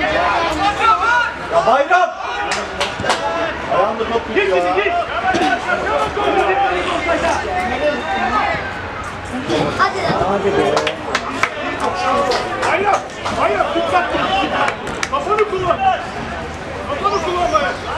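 A football thuds as players kick it across the field.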